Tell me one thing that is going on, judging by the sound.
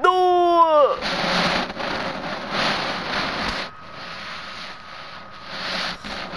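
A swirling wind rushes and roars.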